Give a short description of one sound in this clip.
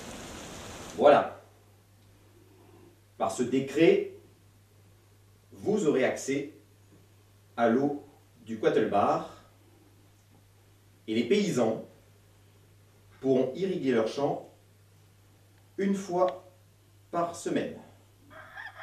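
A man reads aloud slowly and calmly, close by.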